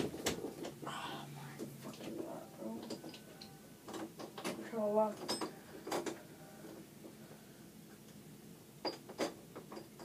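Small objects knock and clatter as they are handled.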